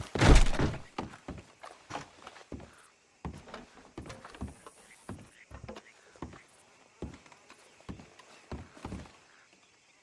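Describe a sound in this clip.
Footsteps thud on wooden floorboards.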